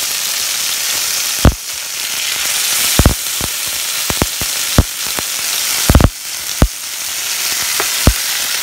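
Oil sizzles and crackles steadily in a hot pan.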